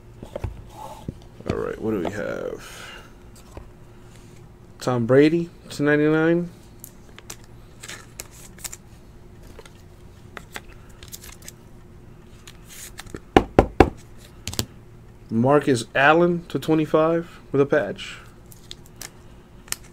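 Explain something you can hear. Trading cards rustle and click as hands shuffle through them close by.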